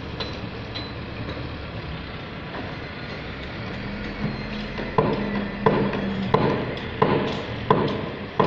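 A wheel loader's diesel engine rumbles steadily.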